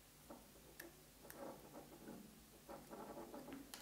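A screwdriver turns a small screw with faint scraping clicks.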